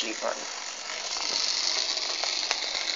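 A model train whirs and clicks along its track.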